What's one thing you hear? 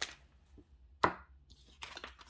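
A card slaps softly onto a table.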